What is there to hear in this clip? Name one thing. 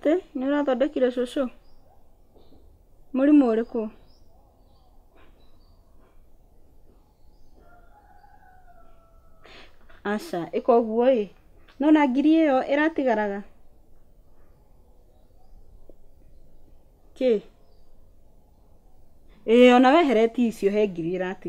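A young woman talks on a phone nearby, speaking calmly with pauses.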